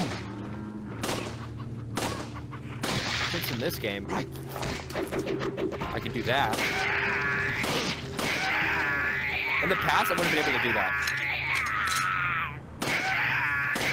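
Gunshots ring out sharply.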